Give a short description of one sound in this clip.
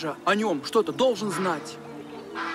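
An elderly woman speaks quietly.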